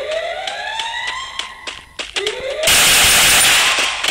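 Pistol shots ring out loudly.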